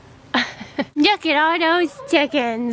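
A woman talks close by in a playful, sing-song voice.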